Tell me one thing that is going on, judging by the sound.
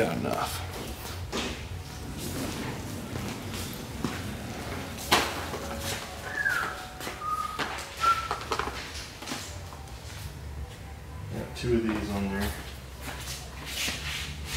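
A shopping cart rattles as it rolls over a hard floor.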